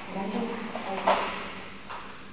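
A woman gives a short command in an echoing room.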